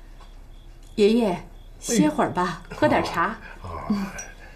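A young woman speaks gently and warmly nearby.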